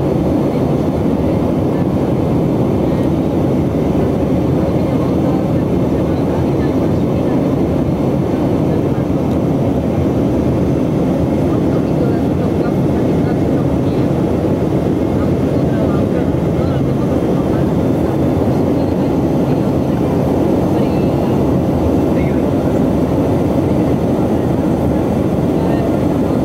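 An aircraft engine drones steadily in a loud, rumbling cabin.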